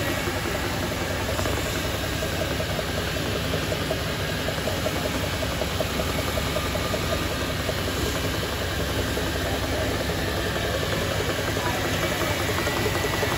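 A chisel scrapes against spinning wood on a lathe.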